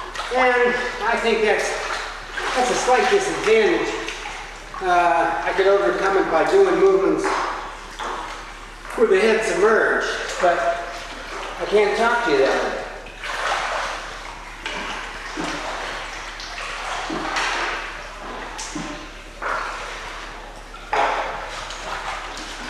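Water splashes and sloshes as a person wades through a pool.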